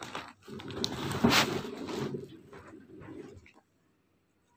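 A hand rubs and taps on a wooden box.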